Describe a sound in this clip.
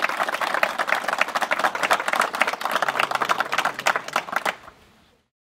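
A crowd of people claps hands in applause outdoors.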